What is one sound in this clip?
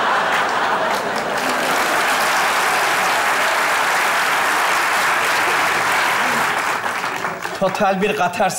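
A large audience laughs and applauds loudly.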